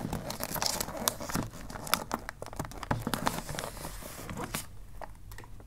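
Wrapping paper crinkles and rustles as it is folded.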